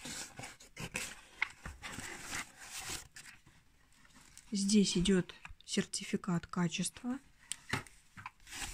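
Foam packing wrap rustles and crinkles as hands handle it.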